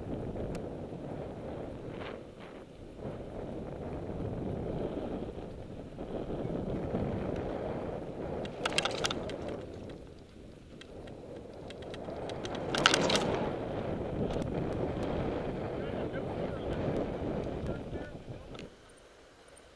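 Bicycle tyres roll steadily over pavement.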